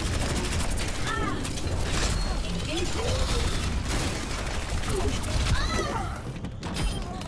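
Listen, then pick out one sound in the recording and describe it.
Rapid-fire guns blast in a video game battle.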